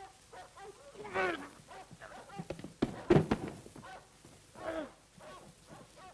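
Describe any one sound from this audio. A man gasps and cries out as he is grabbed.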